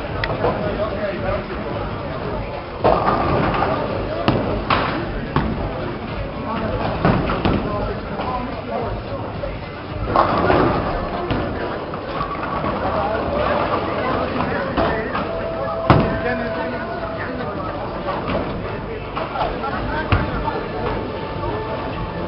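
Bowling pins crash and clatter in an echoing hall.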